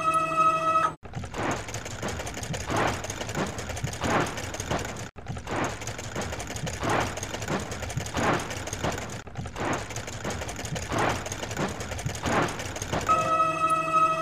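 A spinning brush scrubs and swishes with a rhythmic whir.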